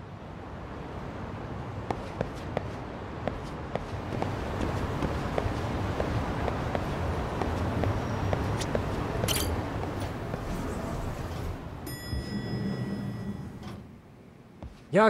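Footsteps tap on hard ground at a walking pace.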